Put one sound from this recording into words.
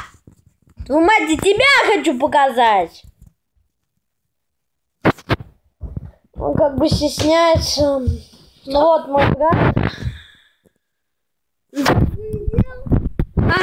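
A young boy talks with animation close to a phone's microphone, in bursts with pauses.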